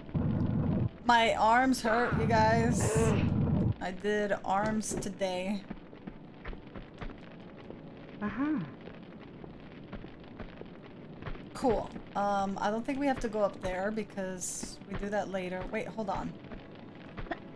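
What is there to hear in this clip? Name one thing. A young woman talks with animation through a close microphone.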